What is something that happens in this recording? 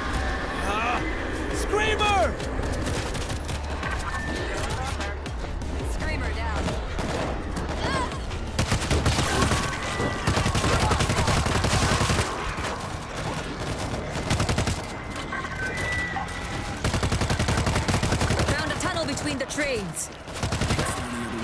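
Zombies snarl and screech.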